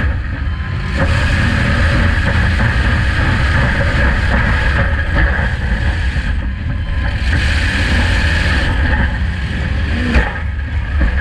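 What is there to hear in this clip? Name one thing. Metal cars crash and bang into each other.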